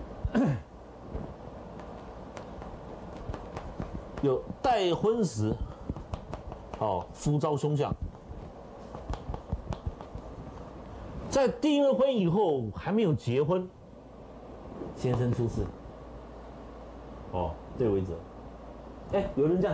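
A middle-aged man speaks calmly and clearly, as if lecturing.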